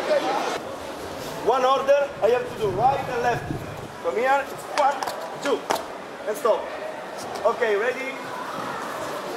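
A man speaks with animation to a group in a large echoing hall.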